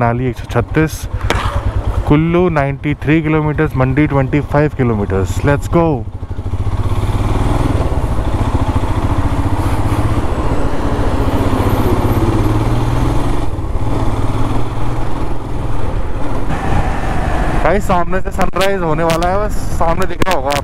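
A motorcycle engine hums and revs steadily as the bike rides along.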